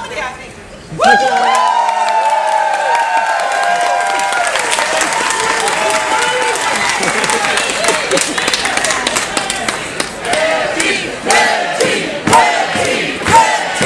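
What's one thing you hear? An audience cheers and screams loudly.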